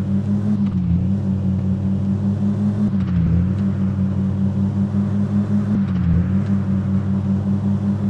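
A car engine hums steadily as it speeds up, dipping briefly at each gear change.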